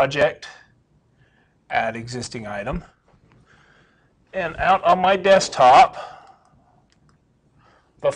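A man lectures in a room, heard through a microphone with slight echo.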